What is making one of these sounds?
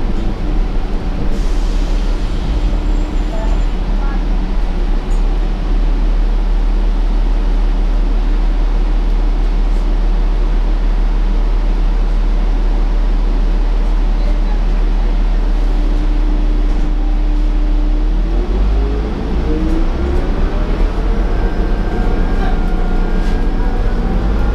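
A bus engine rumbles steadily inside an empty bus.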